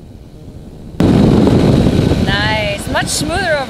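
Wind rushes loudly past the microphone.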